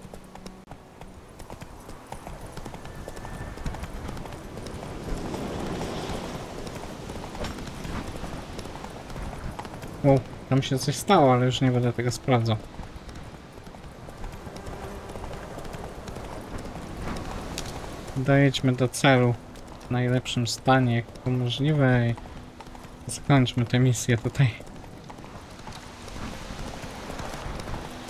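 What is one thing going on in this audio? A horse gallops, its hooves thudding on a dirt path.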